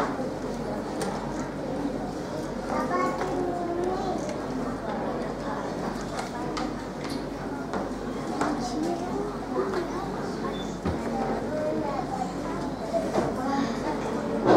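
A young boy speaks softly and hesitantly into a microphone.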